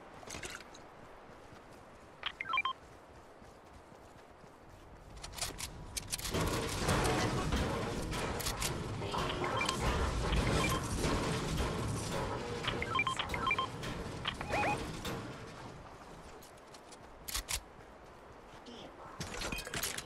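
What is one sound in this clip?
Footsteps patter quickly across the ground.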